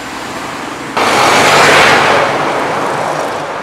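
A truck roars past close by.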